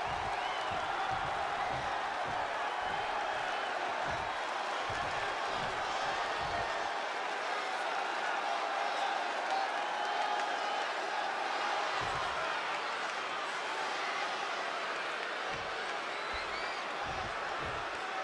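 A large arena crowd cheers and roars steadily.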